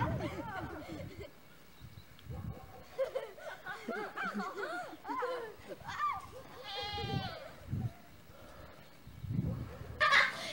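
Children laugh and shout outdoors.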